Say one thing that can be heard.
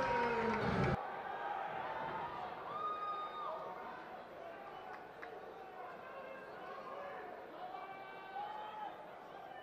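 A crowd murmurs and calls out in the background.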